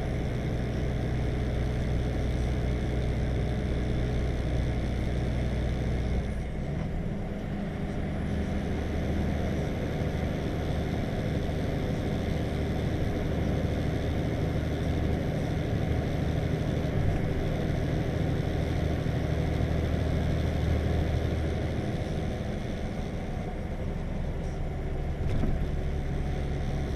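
Tyres roll with a steady roar on the road.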